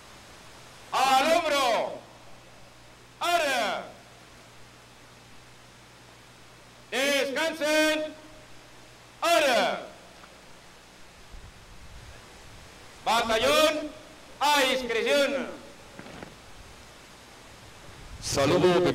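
A man shouts drawn-out military commands from a distance.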